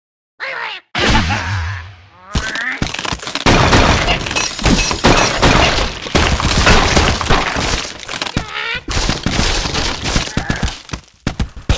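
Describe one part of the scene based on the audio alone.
Blocks smash and clatter as a bird crashes into a structure.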